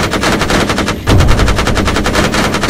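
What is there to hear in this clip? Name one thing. An explosion booms heavily nearby.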